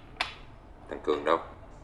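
A middle-aged man speaks briefly close by.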